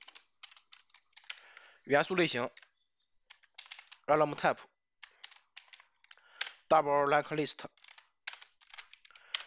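Keys on a keyboard click in quick bursts of typing.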